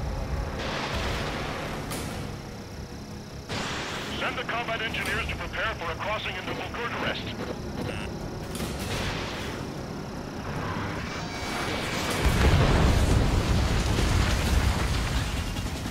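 A jet engine roars steadily, growing louder near the end.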